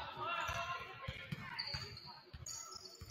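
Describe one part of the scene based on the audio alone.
Spectators and players call out in the echoing gym.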